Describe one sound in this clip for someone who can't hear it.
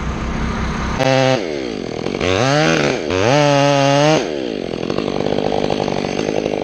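A chainsaw engine revs up and down loudly, then idles.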